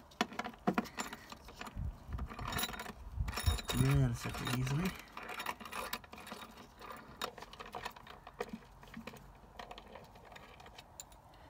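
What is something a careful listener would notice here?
A ratchet wrench clicks rapidly as it turns a bolt.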